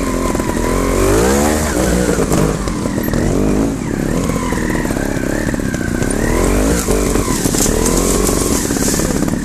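Motorcycle engines rev up and down sharply.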